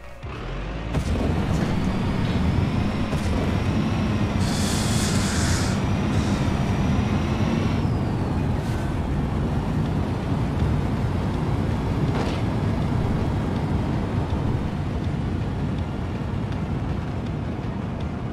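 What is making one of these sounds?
A car engine roars loudly as it speeds up.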